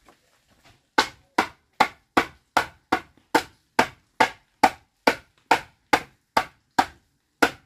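A woman taps a wooden piece, making sharp knocks in a steady rhythm.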